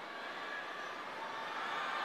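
A young man speaks cheerfully into a microphone.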